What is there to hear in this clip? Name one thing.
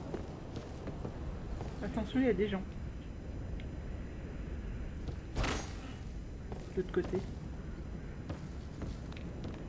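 Armoured footsteps clank on a wooden floor.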